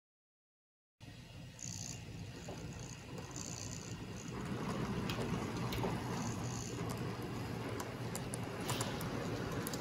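A model train rumbles and clicks along its track.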